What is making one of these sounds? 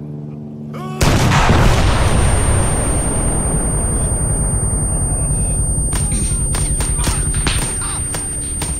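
A loud explosion booms and rumbles slowly away.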